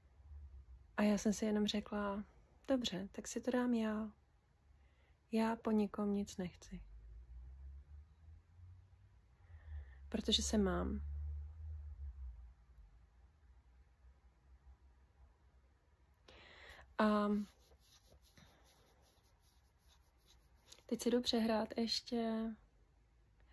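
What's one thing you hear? A woman speaks calmly and close by, pausing between phrases.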